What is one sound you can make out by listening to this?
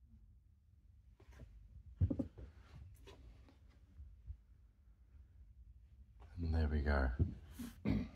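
A gloved hand rubs and taps against a leather seat.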